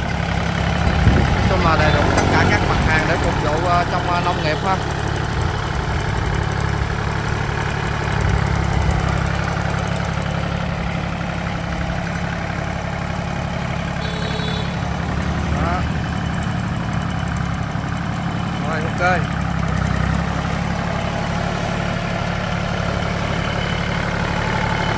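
A small diesel tractor engine chugs steadily close by.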